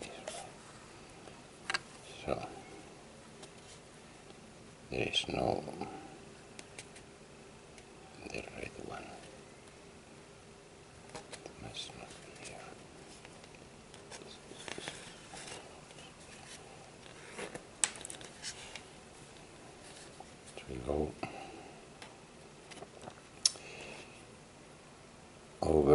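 Cord rustles and scrapes against a cardboard tube as it is wound and knotted by hand.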